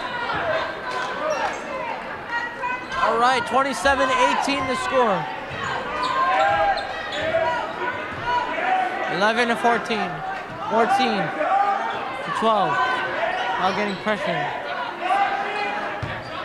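A crowd cheers and chants loudly in an echoing gym.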